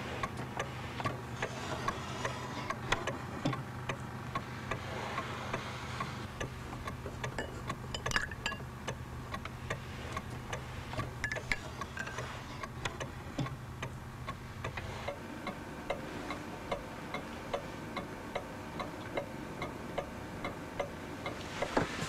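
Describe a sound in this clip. A clock ticks steadily.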